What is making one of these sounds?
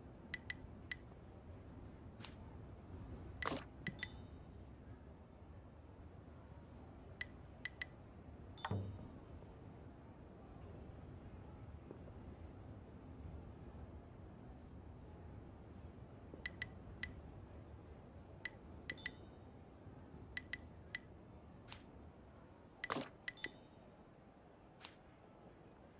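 Short game menu clicks and chimes sound, one after another.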